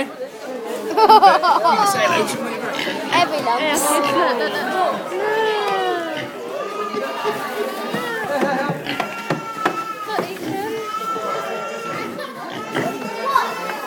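A pig squeals loudly and repeatedly close by.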